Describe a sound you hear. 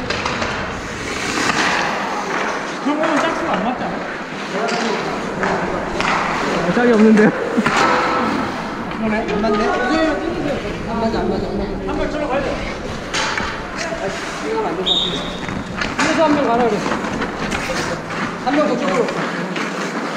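Young men talk and call out across an echoing rink.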